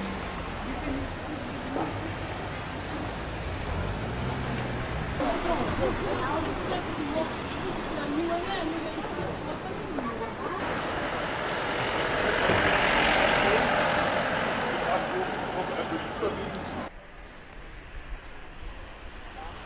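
Street traffic rumbles steadily in the background.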